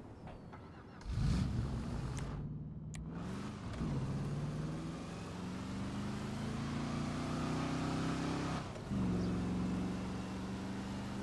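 A car engine starts with a roar and revs up and down as the car drives off.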